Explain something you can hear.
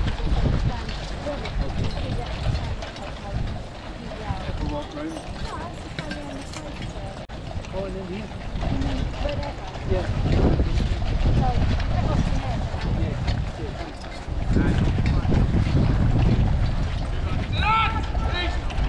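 Voices of a crowd chatter in the distance.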